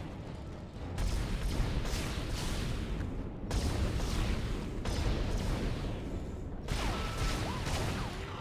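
A weapon fires in loud, sharp bursts.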